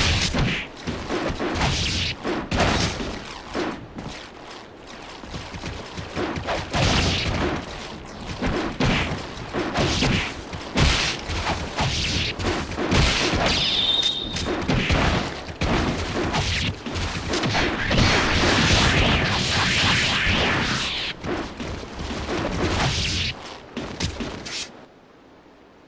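Swords clash and slash again and again.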